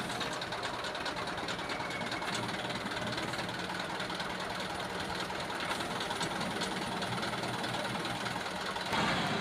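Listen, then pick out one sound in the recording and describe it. The engine of a truck-mounted hydraulic auger drill runs.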